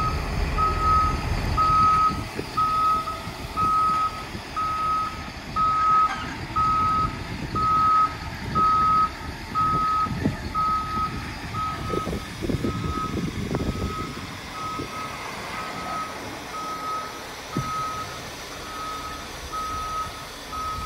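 A reversing alarm beeps on an articulated dump truck.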